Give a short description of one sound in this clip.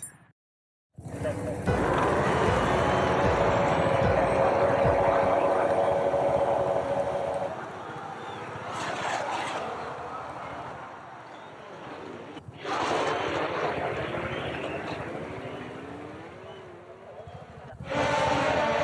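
Race car engines roar as a pack of cars accelerates away.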